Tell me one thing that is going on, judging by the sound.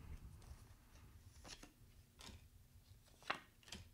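Playing cards riffle and tap as they are shuffled.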